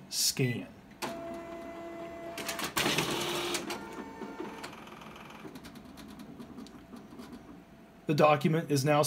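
A copier hums and whirs as it feeds and scans a sheet of paper.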